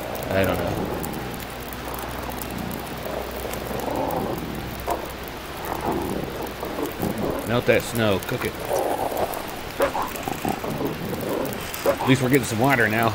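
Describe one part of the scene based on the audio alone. A fire crackles in a small stove.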